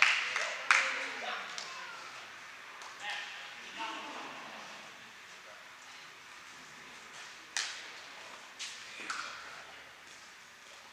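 Young men and women chat nearby in an echoing hall.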